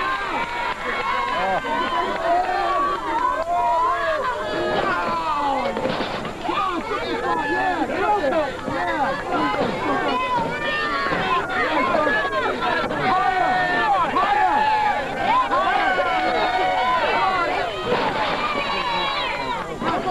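A crowd shouts and cheers outdoors.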